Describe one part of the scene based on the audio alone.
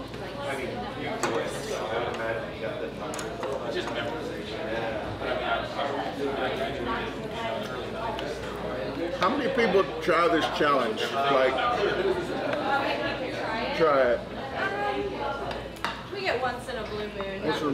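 Many people chatter in the background of a busy room.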